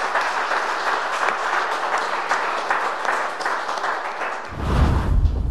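A woman speaks calmly through a microphone and loudspeakers in a hall.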